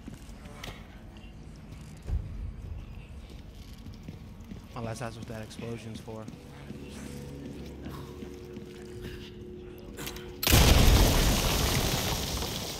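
Footsteps crunch slowly on rough ground.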